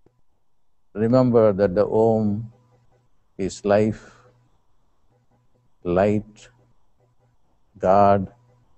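An elderly man speaks calmly in short phrases close to a microphone.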